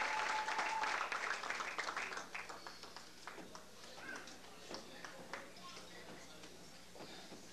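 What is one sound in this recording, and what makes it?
Chairs knock and scrape as people move about.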